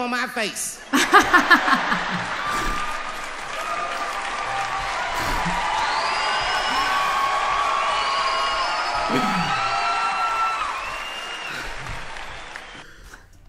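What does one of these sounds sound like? A young man laughs heartily close by.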